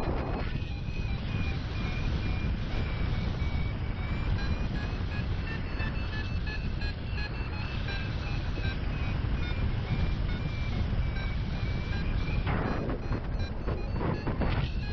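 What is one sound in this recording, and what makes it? Wind roars steadily past a microphone high in the open air.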